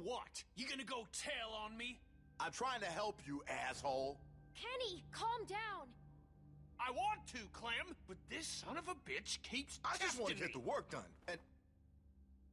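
A young girl grunts and gasps as she struggles.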